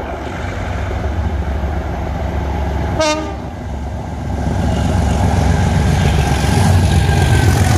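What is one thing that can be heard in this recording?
A diesel locomotive rumbles closer, growing louder.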